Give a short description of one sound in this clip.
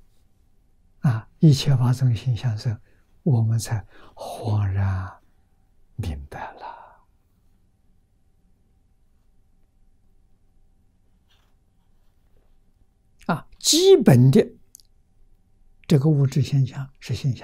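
An elderly man speaks calmly and warmly into a microphone, with pauses.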